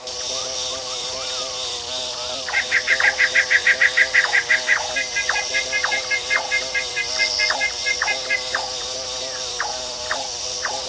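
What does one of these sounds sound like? A bee's wings buzz steadily as it flies.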